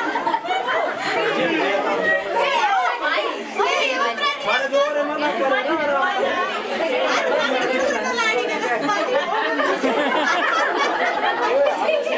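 Young men laugh heartily nearby.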